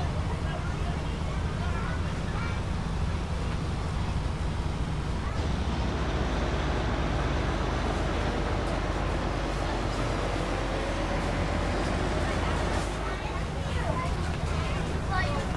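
A diesel school bus engine drones while cruising.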